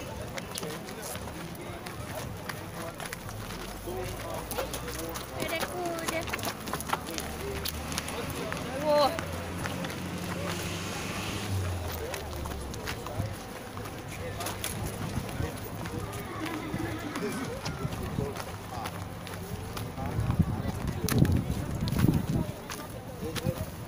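A crowd of men and women talk and call out nearby outdoors.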